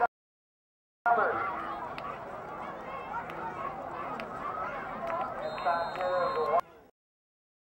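A crowd cheers from the stands.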